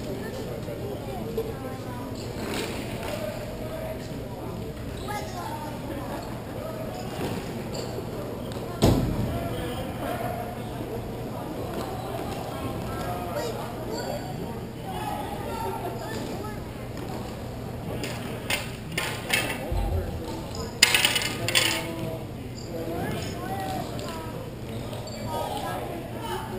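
Skates and wheels rumble across a hard floor in a large echoing hall.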